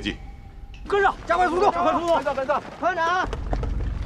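A man shouts orders.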